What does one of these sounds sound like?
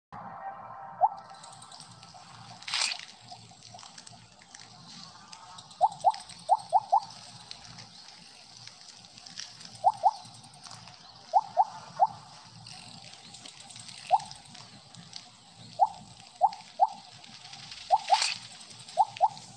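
Short bright electronic blips sound again and again from a game.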